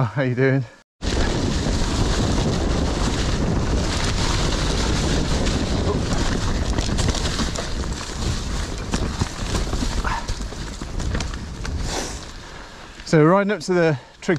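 Mountain bike tyres rumble and crunch over a leafy dirt trail.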